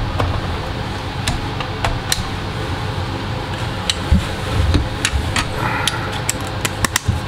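A hot air blower hums steadily.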